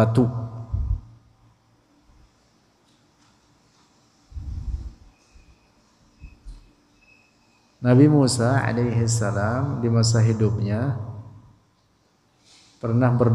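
A man chants in a long, melodic voice close to a microphone.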